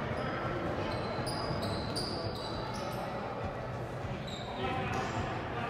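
A basketball bounces on a hard floor as a player dribbles.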